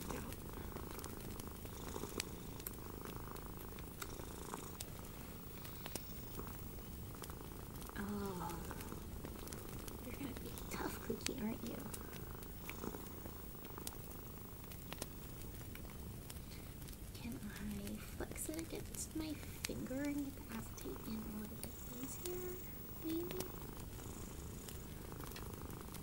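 Fingernails tap and click on small hard objects close by.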